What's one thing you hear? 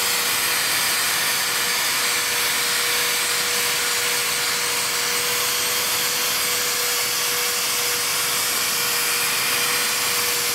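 An electric polisher whirs steadily.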